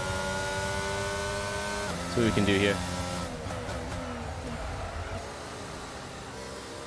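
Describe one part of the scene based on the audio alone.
A racing car engine whines steadily and drops in pitch as it shifts gear.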